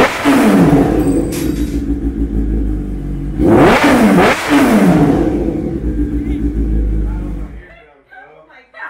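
A motorcycle engine revs up and down loudly, close by.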